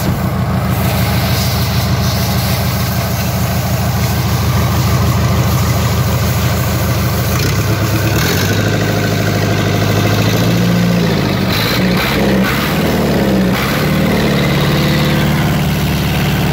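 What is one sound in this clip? Water gushes and splashes out of an exhaust outlet.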